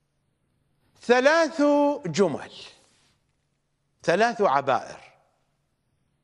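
A middle-aged man speaks with emphasis into a microphone, pausing between phrases.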